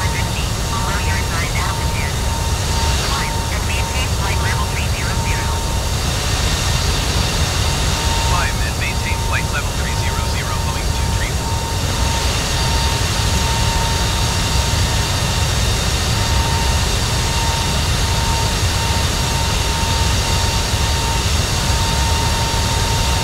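The turbofan engines of a jet airliner roar in steady cruise.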